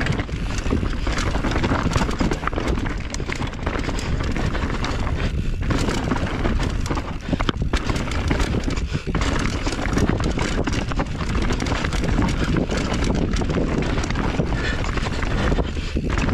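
Bicycle tyres rattle and crunch fast over a rough dirt trail.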